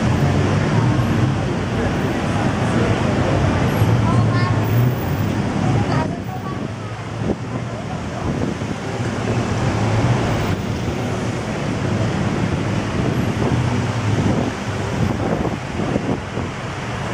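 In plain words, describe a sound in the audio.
Car engines hum and idle in busy street traffic.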